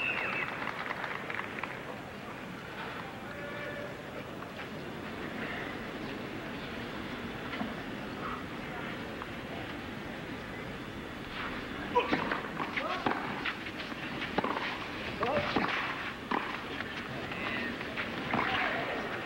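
A crowd murmurs in a large open stadium.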